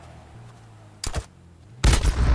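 A single loud shot rings out.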